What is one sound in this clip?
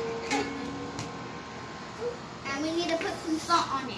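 A young girl strums a small toy guitar.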